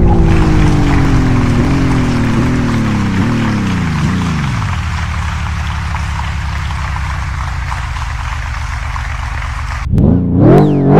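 A sports car engine hums and slowly winds down.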